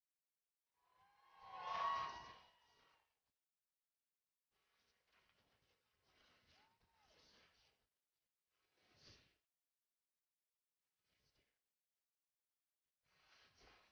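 A group of young men and women sing together into microphones.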